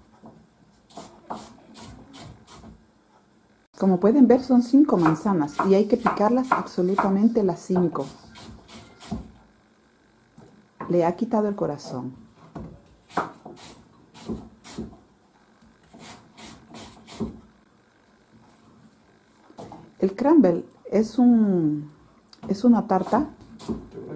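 A knife taps and cuts through apple on a wooden board.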